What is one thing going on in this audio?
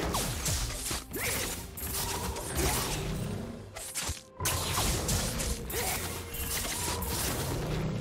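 Video game combat effects whoosh, clash and burst.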